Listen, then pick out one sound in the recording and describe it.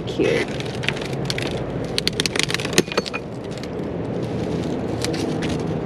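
Cracked mirror glass crackles and clinks as tape is peeled off it.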